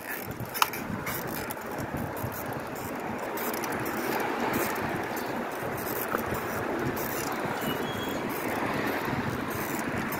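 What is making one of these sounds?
Bicycle tyres roll over paving stones with a steady rumble.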